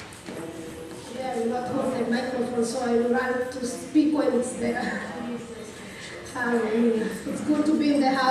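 A band plays music through loudspeakers.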